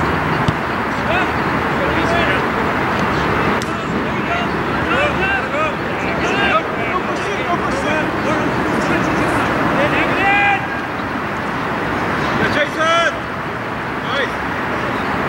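Men shout to each other from a distance outdoors.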